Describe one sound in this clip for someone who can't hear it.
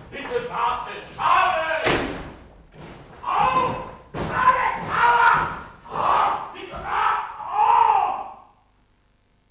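A man speaks with animation on a stage, heard from afar in a hall.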